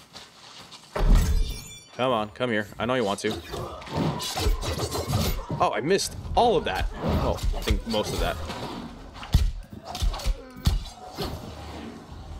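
Magic blasts whoosh and crackle during a fight.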